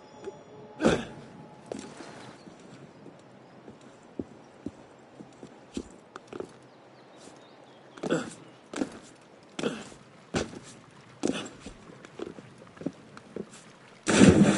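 A climber's hands grip and scrape against stone in quick bursts.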